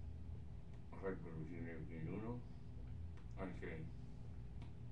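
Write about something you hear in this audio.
An older man speaks briefly close to the microphone, around a pipe stem.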